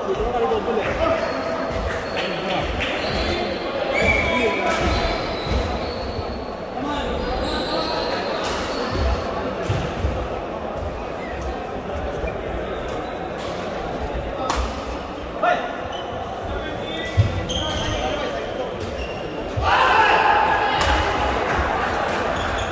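Many men talk and call out in the background.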